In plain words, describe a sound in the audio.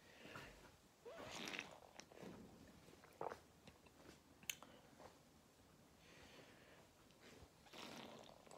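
A young man sips air through a bottle's mouthpiece.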